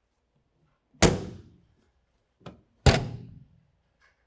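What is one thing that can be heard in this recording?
Storage compartment doors slam shut with loud thuds.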